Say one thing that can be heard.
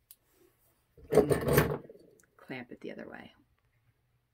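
Clamps click and rattle as they are loosened.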